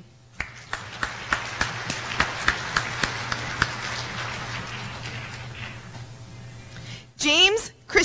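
An audience claps steadily in a large hall, then fades out.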